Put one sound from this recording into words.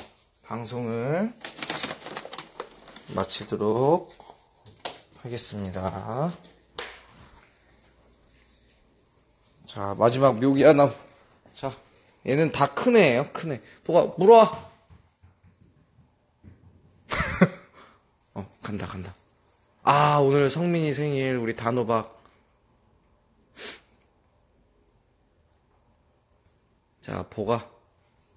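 A small dog yelps and whines excitedly.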